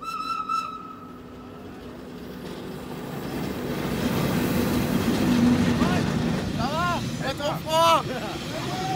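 An electric train rumbles past close by, growing louder.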